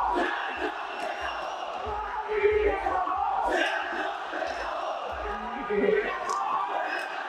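A man speaks calmly into a microphone, heard over a loudspeaker in a large echoing hall.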